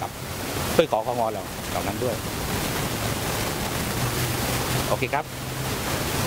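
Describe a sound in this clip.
A man speaks calmly into microphones up close.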